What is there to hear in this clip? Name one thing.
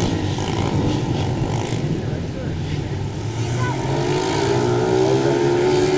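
Small dirt bike engines buzz and rev loudly nearby.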